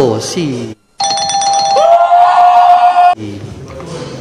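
A man exclaims loudly.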